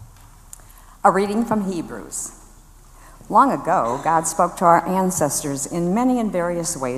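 A woman reads out aloud through a microphone.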